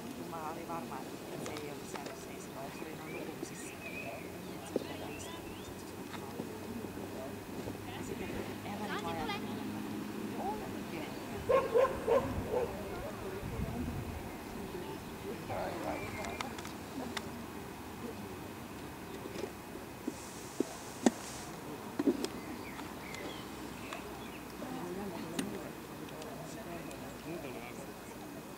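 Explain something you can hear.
A woman calls out short commands to a dog outdoors.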